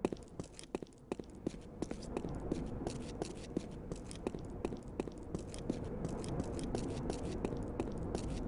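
Footsteps tap quickly and steadily on a hard floor.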